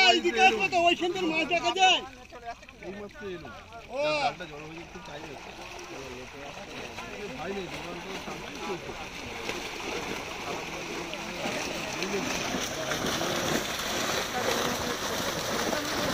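A crowd of men chatters throughout.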